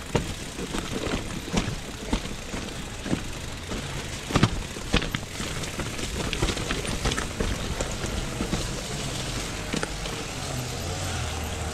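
A bicycle rattles and bumps over a rough path.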